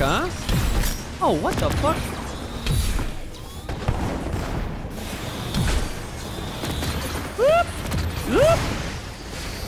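Electronic whooshing tones sweep up and down.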